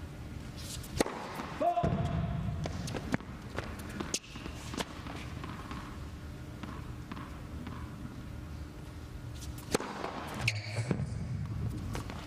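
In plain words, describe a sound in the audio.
A racket strikes a tennis ball with sharp pops.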